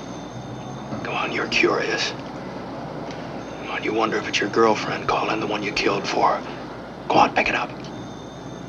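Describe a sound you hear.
A middle-aged man speaks calmly over a phone.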